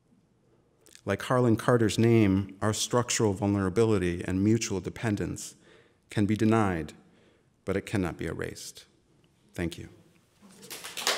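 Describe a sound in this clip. A middle-aged man speaks calmly into a microphone, reading out in a room.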